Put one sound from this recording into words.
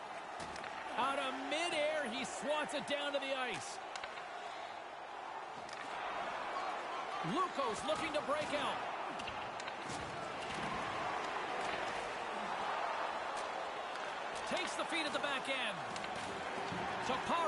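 Skates scrape on ice.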